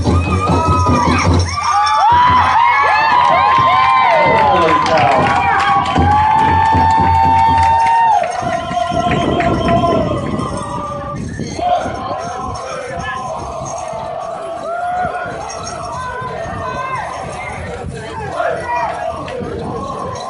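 Bells on dancers' outfits jingle with their steps.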